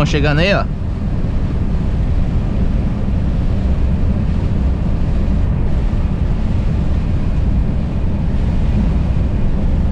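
A truck engine rumbles steadily from inside the cab.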